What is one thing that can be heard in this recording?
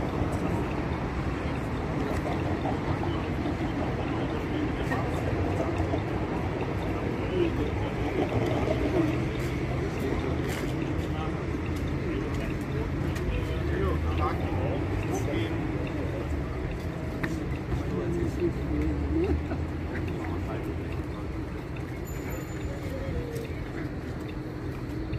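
Traffic hums in the background.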